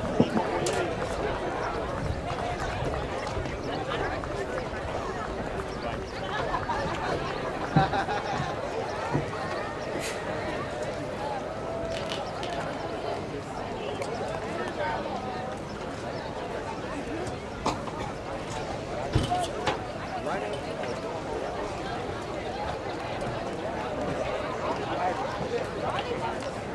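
A small crowd of spectators chatters outdoors nearby.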